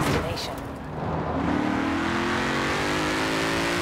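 A sports car engine revs higher as it accelerates.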